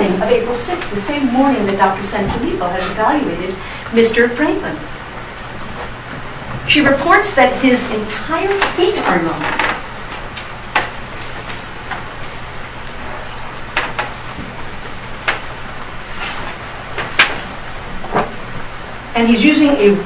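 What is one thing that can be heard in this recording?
A woman speaks calmly in a large echoing room.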